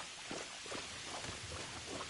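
A weapon whooshes through the air in a swing.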